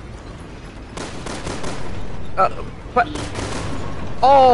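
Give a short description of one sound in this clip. Gunshots fire in a cramped, echoing space.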